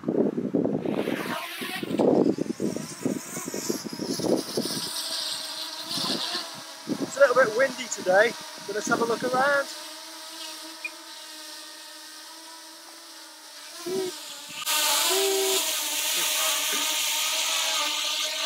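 A small drone's propellers buzz in a steady high whine.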